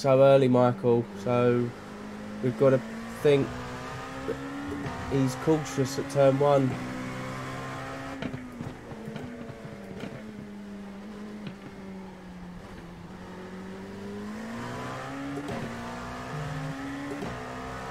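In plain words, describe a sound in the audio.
A racing car engine drones steadily, its pitch rising and falling with the gears.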